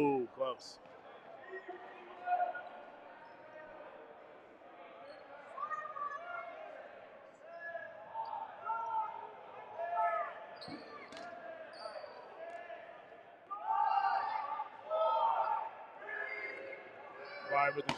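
Young men and women chatter and call out in a large echoing hall.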